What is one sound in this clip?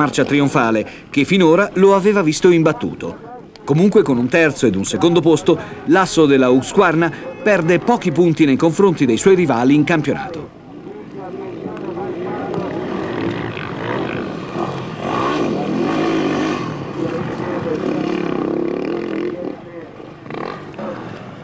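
A motorcycle engine revs and whines.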